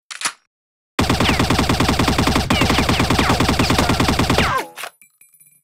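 A rifle fires a long, rapid burst of shots.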